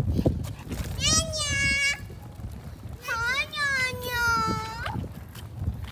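A young child cries out loudly and wails close by.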